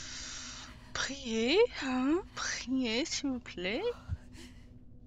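A creature lets out loud, wavering shrieks.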